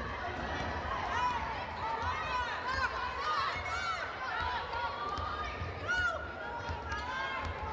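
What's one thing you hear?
A basketball thumps on the wooden floor as it is dribbled.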